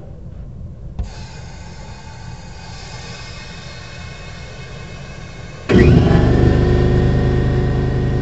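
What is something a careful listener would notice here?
A metal hose fitting clicks and scrapes as a hand twists it.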